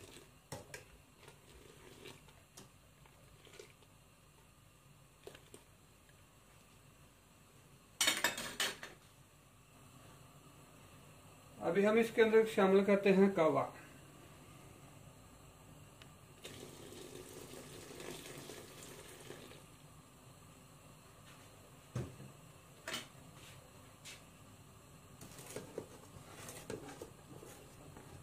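A metal ladle scrapes and clinks against a metal pot.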